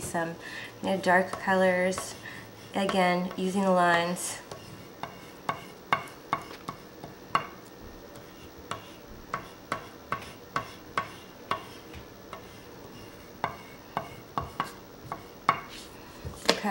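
A crayon scratches and taps on paper in short strokes.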